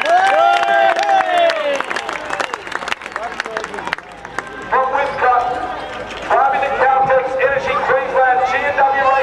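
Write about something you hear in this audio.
A large crowd murmurs.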